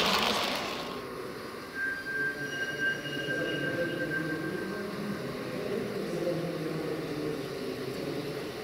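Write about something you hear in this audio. A model train rumbles and clatters along the tracks, drawing closer.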